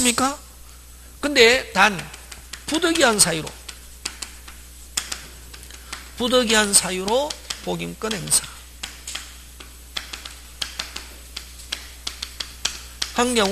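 A man speaks with animation through a microphone, in short bursts.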